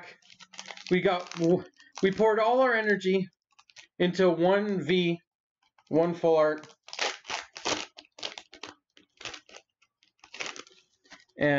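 Foil packaging crinkles as it is torn open.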